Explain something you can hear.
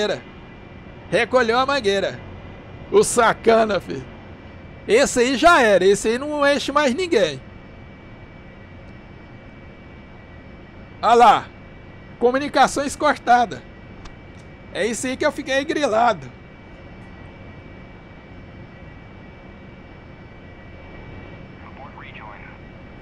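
A jet engine hums steadily.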